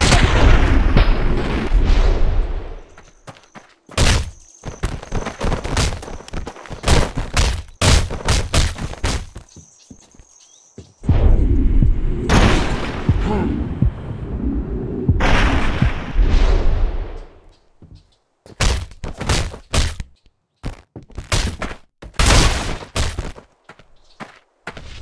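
Footsteps thud on wooden boards and stone.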